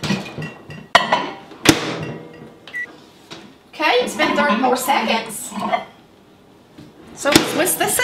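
A microwave door clicks open and thumps shut.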